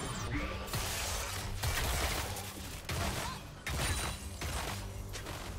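Magic spells whoosh and crackle in quick bursts amid a fight.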